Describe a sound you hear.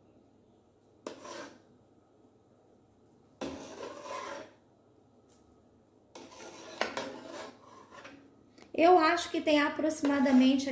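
A metal spoon stirs liquid in a pot, scraping against its side.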